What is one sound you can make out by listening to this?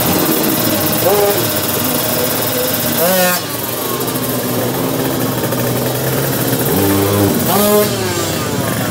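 Racing motorcycle engines rev sharply, rising and falling in pitch.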